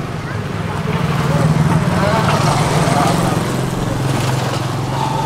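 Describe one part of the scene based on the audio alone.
A passing motorbike roars by close and fades.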